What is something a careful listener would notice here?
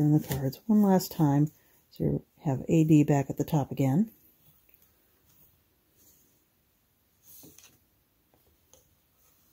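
Taut threads rustle softly as hands pull and shift them.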